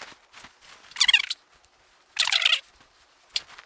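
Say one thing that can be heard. Compressed air hisses from a blow gun in short bursts.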